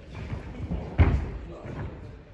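A gymnast lands with a dull thud on a padded floor.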